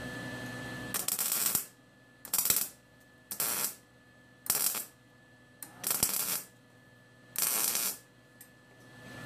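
An arc welder crackles and hisses in short bursts.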